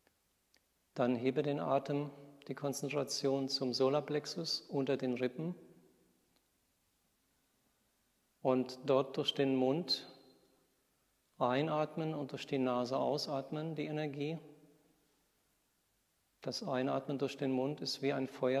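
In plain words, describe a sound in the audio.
A man speaks calmly and slowly nearby, with pauses.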